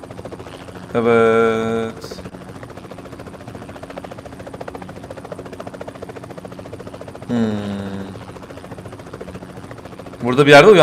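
A young man speaks loudly and drawn out into a close microphone.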